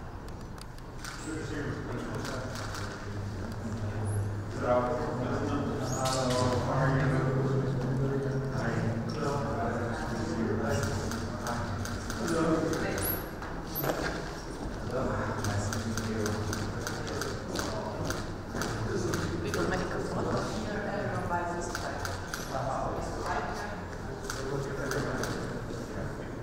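Several men talk calmly nearby.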